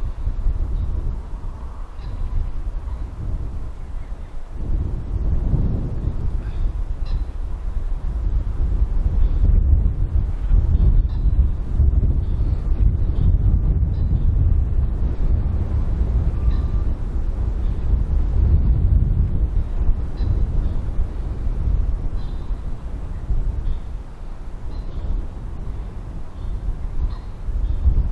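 Wind blusters loudly outdoors, rumbling across the microphone.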